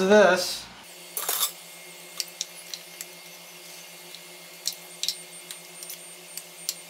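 A spoon scrapes ground meat from a bowl onto a plate.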